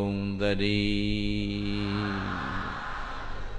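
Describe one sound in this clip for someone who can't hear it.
A man chants in a low, steady voice through a microphone.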